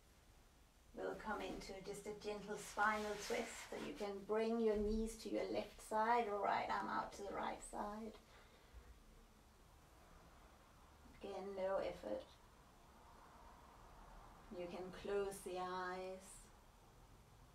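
A woman speaks calmly and slowly, close by, with long pauses.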